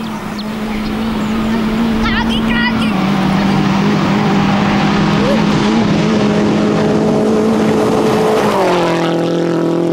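A rally car engine roars at high revs as the car speeds closer, then drops in pitch as it rushes past.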